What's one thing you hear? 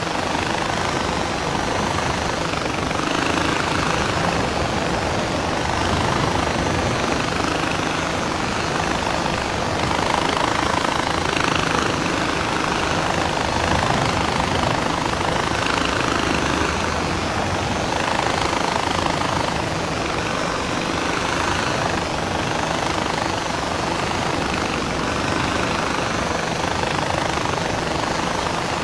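A pulley whirs steadily along a cable.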